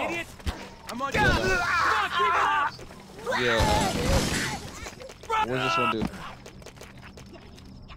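An energy weapon fires rapid crackling shots.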